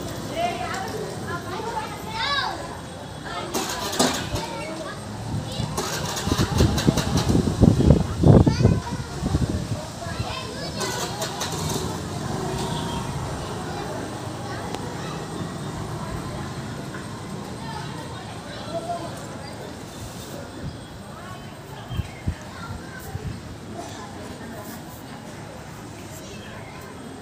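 A motorcycle engine rumbles nearby.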